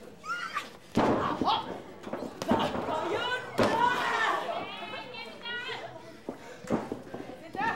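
A wrestler's slap lands with a sharp smack.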